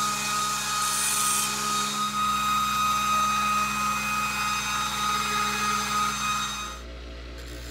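A grinder whines loudly against metal.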